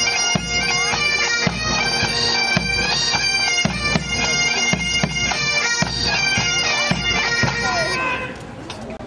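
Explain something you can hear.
Drums beat along with the pipes.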